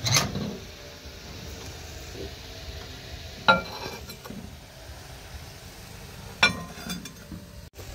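A microwave oven hums steadily.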